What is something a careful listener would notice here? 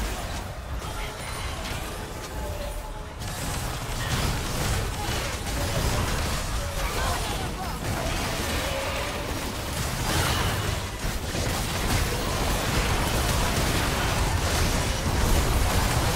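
Magic blasts and clashing blows crackle and burst in a busy battle.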